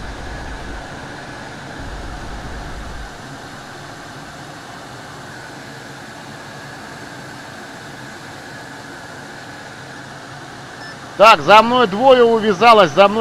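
A jet engine roars steadily.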